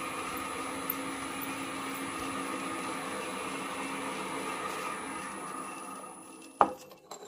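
A drill press whirs steadily as its bit spins.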